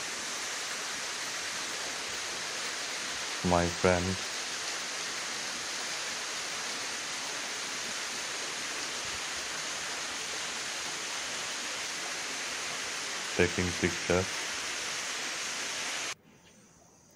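A waterfall splashes steadily nearby.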